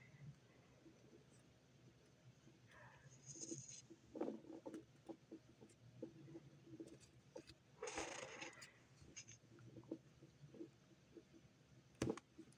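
Heavy hooves crunch and thud through deep snow close by.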